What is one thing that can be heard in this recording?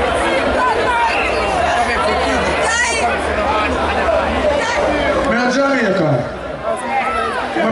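A crowd of men and women sings and cheers close by.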